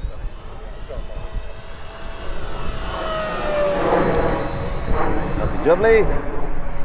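A small model plane's engine whines overhead, its pitch slowly dropping as it passes.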